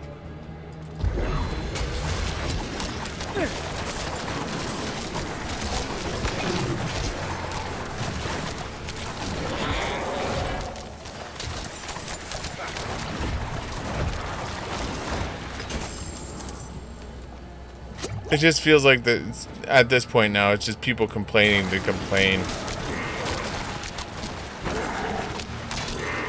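Game combat effects clash and crackle throughout.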